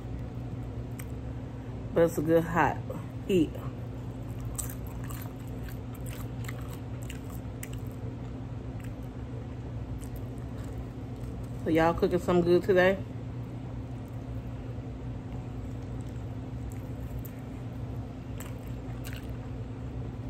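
A man chews food with wet, crunchy mouth sounds.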